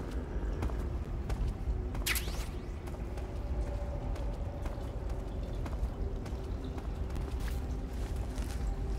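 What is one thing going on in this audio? Footsteps tread slowly over a hard floor.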